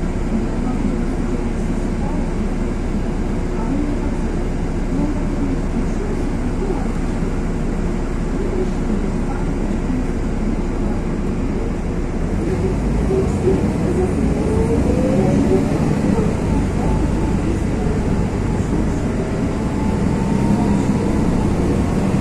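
Steady rain falls and patters on wet pavement outdoors.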